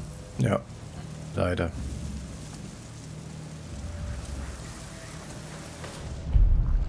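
Tall grass rustles softly as someone creeps through it.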